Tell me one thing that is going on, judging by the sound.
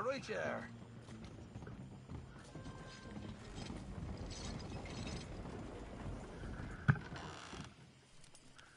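Horse hooves clop and wagon wheels roll on a wooden floor.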